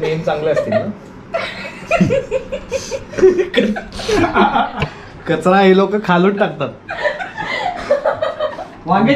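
A young woman laughs heartily close by.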